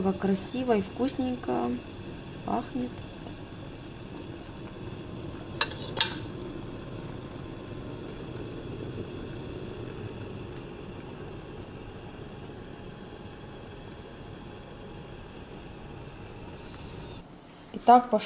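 Thick jam bubbles and simmers in a pot.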